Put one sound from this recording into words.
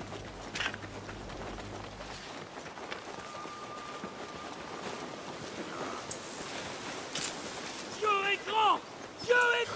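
Footsteps run over sandy ground.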